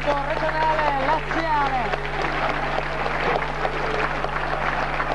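Men chant and sing loudly together in a crowd.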